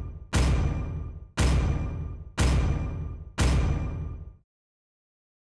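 A deep booming countdown tick strikes once a second, each one slowly fading.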